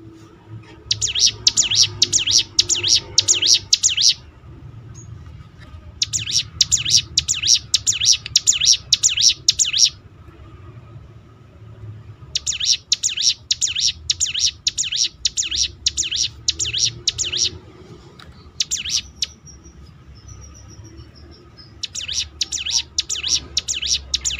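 A small bird sings loud, rapid, repeated chirping phrases close by.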